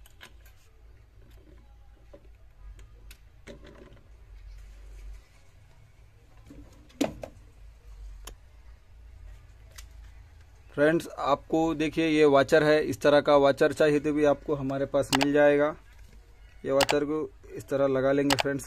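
Plastic parts click and knock as they are handled and taken apart.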